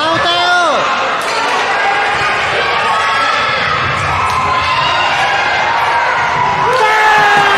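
Sports shoes squeak on a wooden court in an echoing sports hall.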